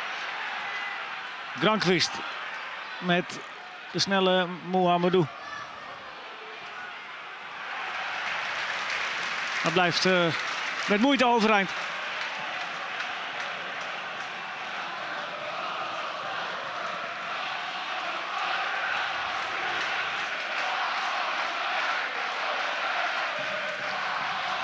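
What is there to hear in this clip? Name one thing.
A stadium crowd murmurs and cheers steadily in the distance.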